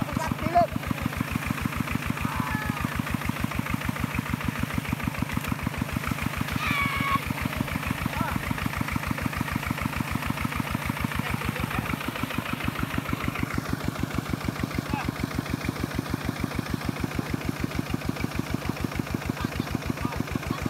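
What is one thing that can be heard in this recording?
A small engine chugs steadily nearby.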